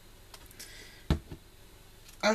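A small bottle knocks down onto a hard surface.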